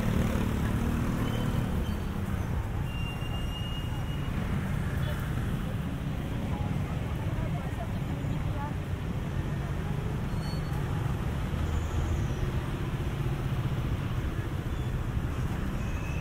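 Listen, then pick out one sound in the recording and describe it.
Motorcycle engines rumble past nearby.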